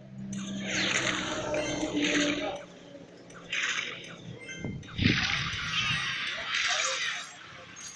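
Cartoonish battle effects clash and thud.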